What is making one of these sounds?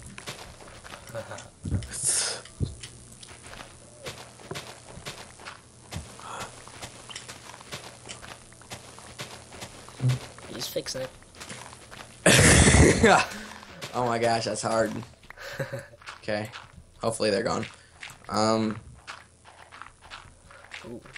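A shovel digs into dirt with repeated soft crunches.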